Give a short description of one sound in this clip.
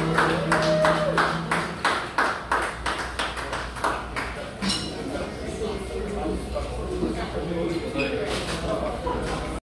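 A saxophone plays a melody close by.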